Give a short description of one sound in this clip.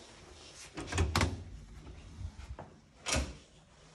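A door latch clunks as the door swings open.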